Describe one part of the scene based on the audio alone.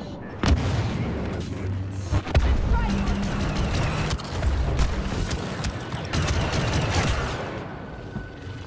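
Blaster fire and explosions crackle loudly in a game.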